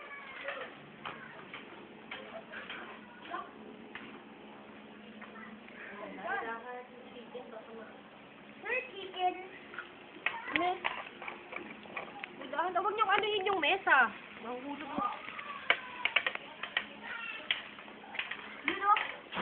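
Children and adults talk and shout excitedly nearby.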